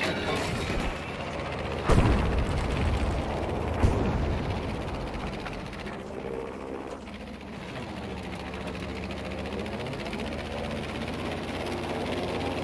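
Wind rushes past a plane in flight.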